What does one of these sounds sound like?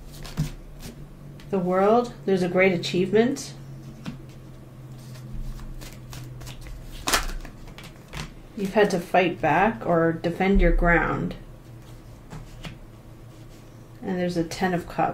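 Playing cards shuffle and slap onto a table.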